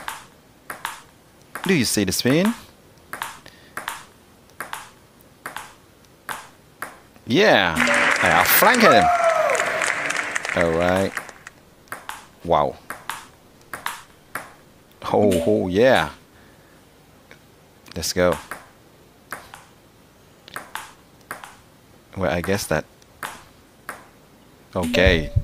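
A table tennis ball clicks sharply against a table and paddles in a quick back-and-forth rhythm.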